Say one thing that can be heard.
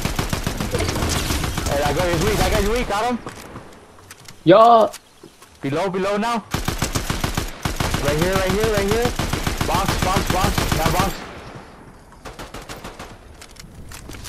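Video game gunfire rattles in rapid bursts.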